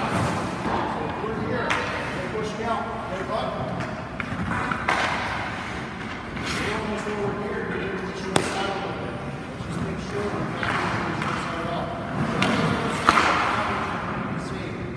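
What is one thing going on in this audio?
A man coaches by talking, echoing in a large indoor ice rink.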